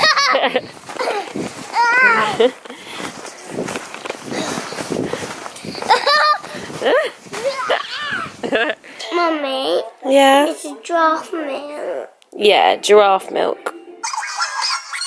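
A young child talks excitedly close by.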